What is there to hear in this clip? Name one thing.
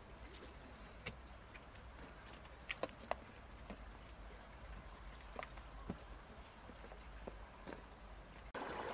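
A stream trickles softly nearby.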